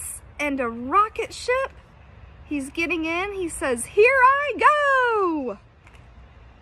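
A woman reads aloud up close, with an animated, expressive voice.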